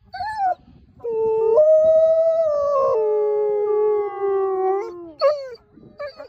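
A wolf howls long and loud close by, its pitch sliding down at the end.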